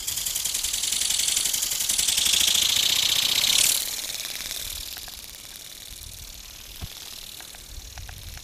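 A toy bird's wings flap with a fast, loud whirring buzz that drops off and fades into the distance.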